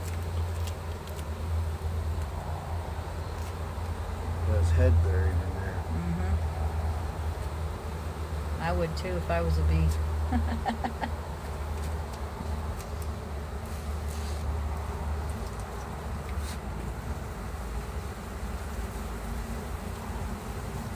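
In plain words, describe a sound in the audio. A swarm of honeybees buzzes steadily close by.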